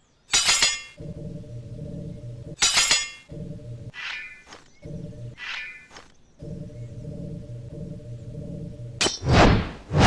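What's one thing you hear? A glowing sword hums with a low, steady buzz.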